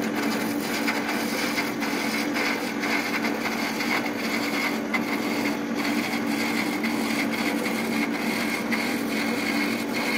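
A cutting tool shaves plastic on a spinning lathe with a steady hissing scrape.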